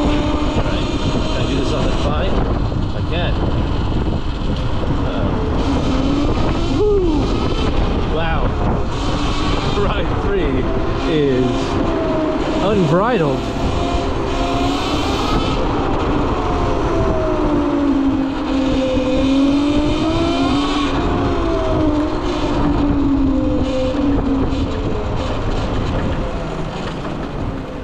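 An electric motorbike motor whines, rising and falling in pitch as it speeds up and slows down.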